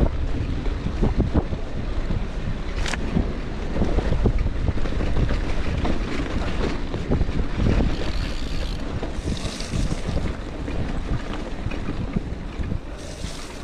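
Wind buffets loudly outdoors.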